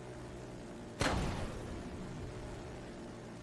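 A crackling electric blast bursts loudly.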